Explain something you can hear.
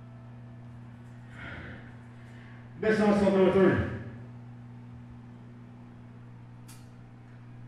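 An amplifier hums steadily and low.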